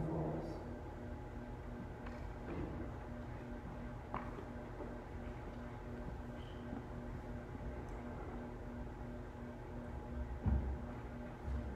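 Footsteps knock on a wooden floor as a woman walks away.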